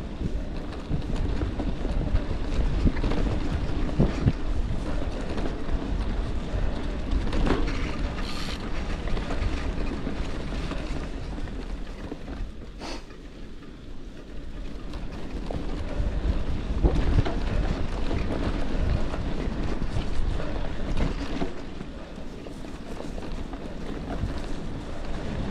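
Bicycle tyres crunch and rumble over a rough dirt trail.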